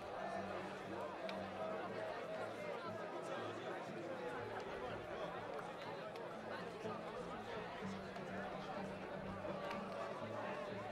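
A group of young men sing together outdoors.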